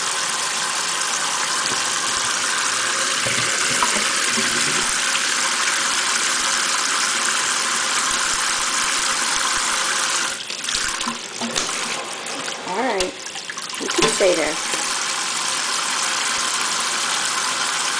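Water from a tap pours and splashes steadily into a sink.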